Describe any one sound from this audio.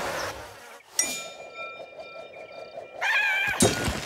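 A bright, sparkling chime rings out and holds.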